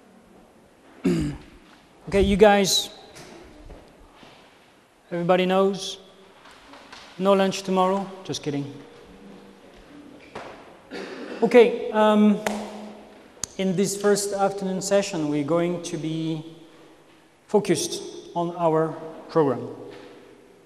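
A man speaks calmly through a clip-on microphone.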